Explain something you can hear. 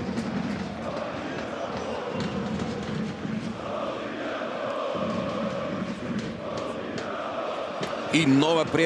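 A large stadium crowd chants and roars.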